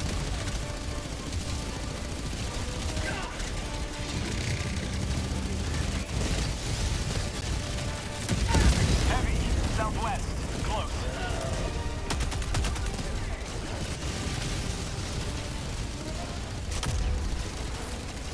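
Explosions rumble and boom in the distance.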